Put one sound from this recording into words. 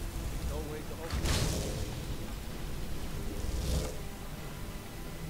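A magical portal whooshes and swirls open.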